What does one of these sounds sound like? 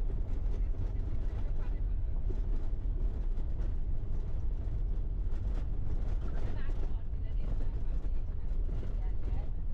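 Tyres crunch and rattle over a rough gravel track.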